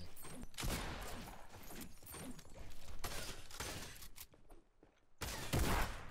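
Game building pieces thud and clatter into place in quick bursts.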